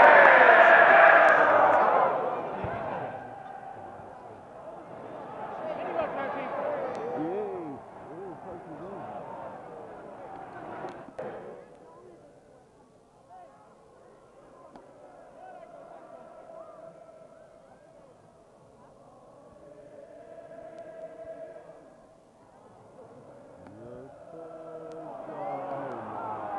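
A large stadium crowd roars and chants loudly, outdoors.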